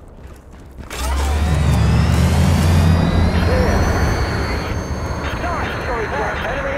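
An aircraft's engines roar loudly as it lifts off and flies away.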